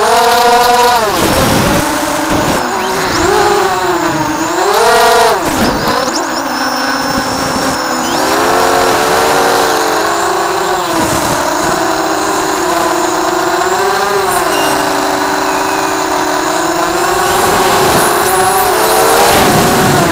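A small drone's motors whine close by, rising and falling in pitch as it flies.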